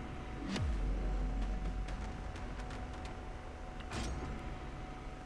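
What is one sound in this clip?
A game sounds a deep rumbling whoosh.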